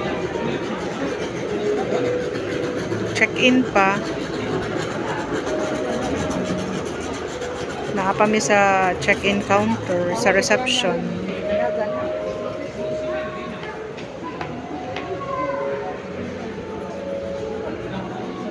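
Several people talk in the background in a large, echoing hall.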